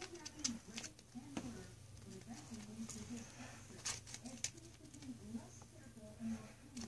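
A small animal scratches and rustles about in its cage.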